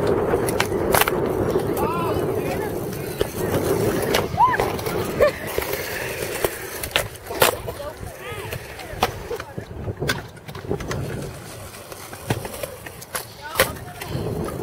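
A skateboard clacks sharply against concrete.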